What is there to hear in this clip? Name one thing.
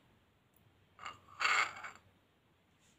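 A ceramic cup clinks against a saucer.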